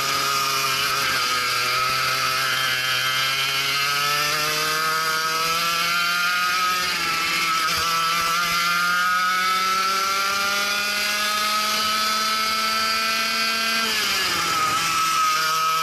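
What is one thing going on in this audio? A go-kart engine buzzes loudly up close, its pitch rising as the kart speeds up and dropping as it slows.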